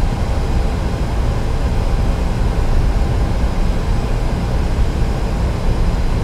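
Jet engines rumble steadily as an airliner rolls along a runway.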